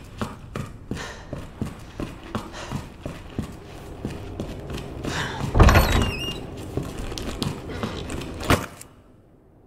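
Footsteps thud on hard floor at a steady pace.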